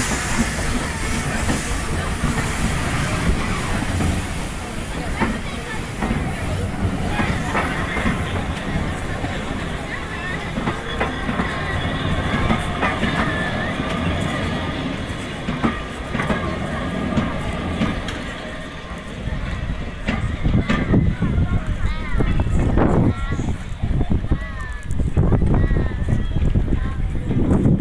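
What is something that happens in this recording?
Railway carriages rumble and clatter past close by on the tracks.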